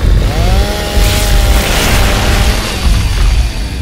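A chainsaw revs and whines.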